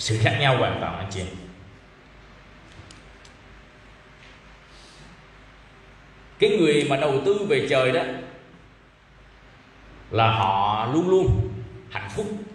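A man speaks calmly and closely into a microphone, with pauses.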